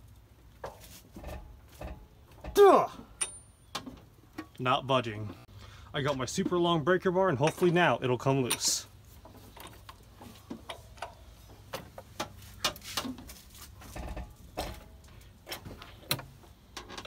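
Metal tools clink and tap against engine parts.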